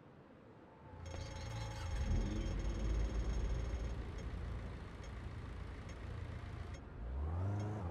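A car engine runs and idles close by.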